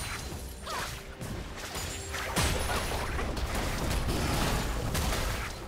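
Spell effects whoosh and crash in a busy fight.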